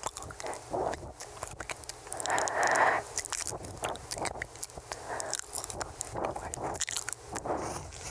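A young woman whispers very close into a microphone.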